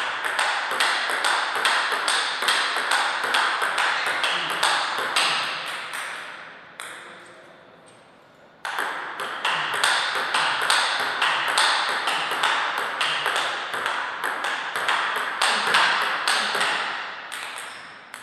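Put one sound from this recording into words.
A table tennis ball clicks quickly back and forth off paddles and the table.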